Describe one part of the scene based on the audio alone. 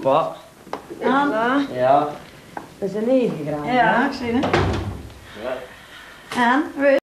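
An elderly woman speaks with delight at close range.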